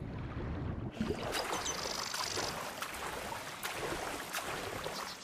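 A swimmer splashes through water with steady strokes.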